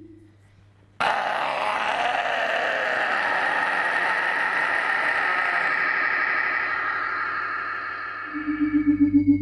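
A man growls harshly into a distorted microphone.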